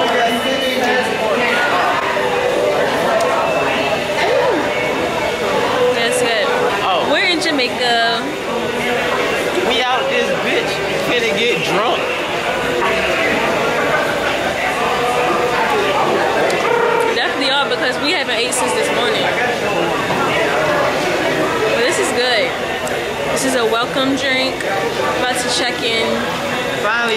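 A young woman talks casually, close by.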